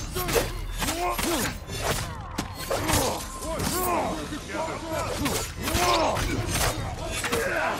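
Swords clash and ring sharply again and again.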